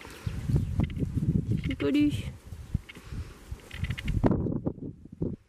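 A hand rubs and pats a pony's forelock close by, with muffled rustling and bumping.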